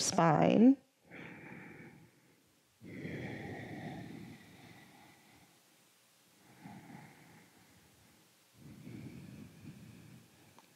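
A young woman breathes in and out slowly and deeply.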